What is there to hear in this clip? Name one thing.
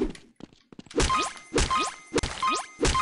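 A blade swings and strikes with sharp thuds.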